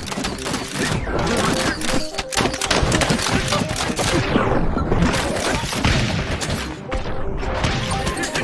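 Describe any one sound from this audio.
Magic bolts crackle and zap in a dense battle.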